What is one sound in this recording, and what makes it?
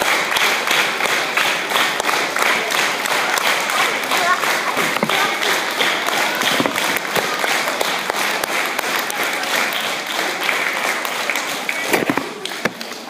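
A crowd of children and adults claps along in a quick steady rhythm.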